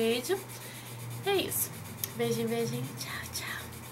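A young woman sings a few notes close to a microphone.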